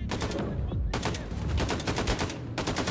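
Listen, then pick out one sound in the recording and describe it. A rapid burst of gunfire rattles.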